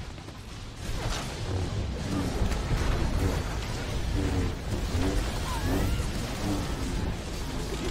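Laser blasts and energy effects ring out in a video game battle.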